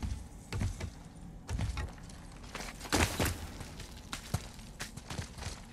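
An axe strikes with heavy thuds.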